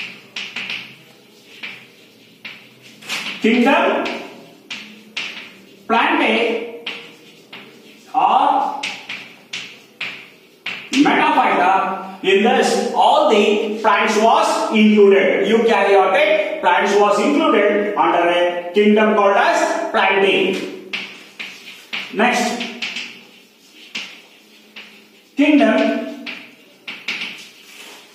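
A man lectures loudly and clearly, close to a microphone.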